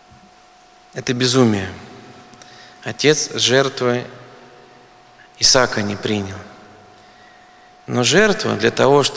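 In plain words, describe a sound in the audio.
A middle-aged man speaks with animation through a microphone, in short phrases with pauses, in a reverberant room.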